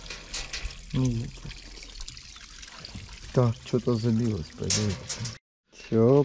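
A dog laps water noisily.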